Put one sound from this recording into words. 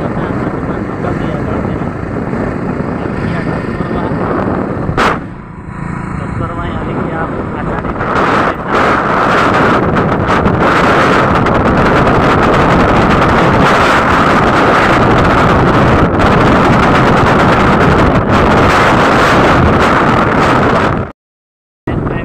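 A middle-aged man talks cheerfully up close, outdoors in wind.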